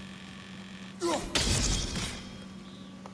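An axe strikes stone with a heavy clang.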